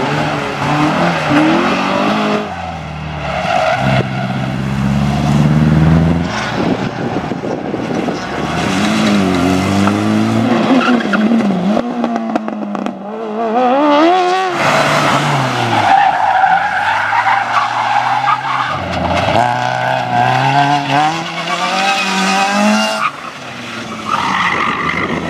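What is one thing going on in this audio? Tyres squeal on tarmac.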